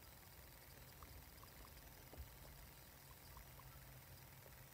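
A guinea pig nibbles and bites at something hard, with small clicking sounds.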